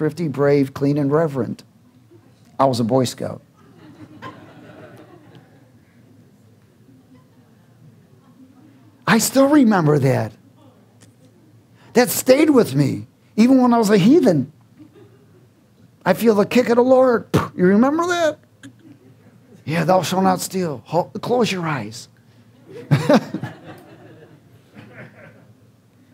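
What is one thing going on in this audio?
A middle-aged man speaks with animation through a microphone, in bursts with pauses.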